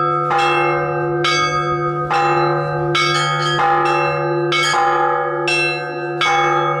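Small church bells ring out in a quick, lively pattern, close by and ringing on after each strike.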